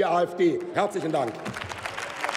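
A middle-aged man speaks firmly into a microphone in a large echoing hall.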